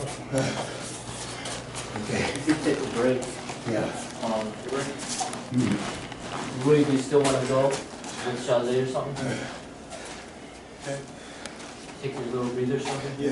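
A man speaks calmly nearby in a room with a slight echo.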